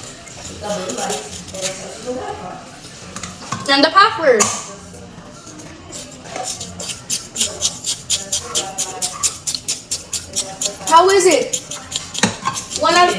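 A plastic spoon scrapes and taps inside a cup.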